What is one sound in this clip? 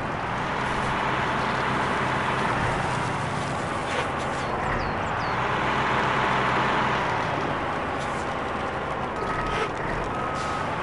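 A heavy diesel engine rumbles and strains steadily.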